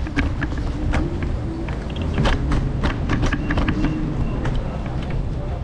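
Footsteps tap on pavement at a steady walking pace.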